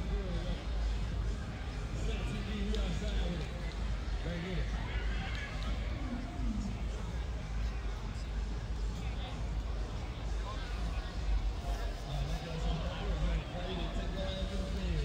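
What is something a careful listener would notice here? A crowd of young men and women chatters nearby.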